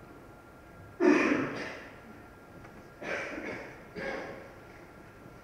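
A person in the audience coughs loudly nearby.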